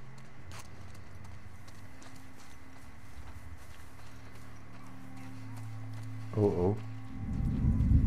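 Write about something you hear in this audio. Tall grass rustles as someone walks through it.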